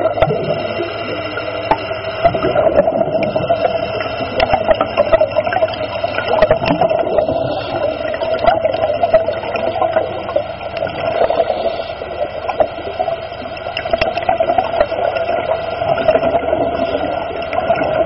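Water churns and rumbles, heard muffled from underwater.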